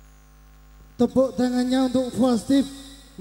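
A man sings loudly into a microphone through loudspeakers.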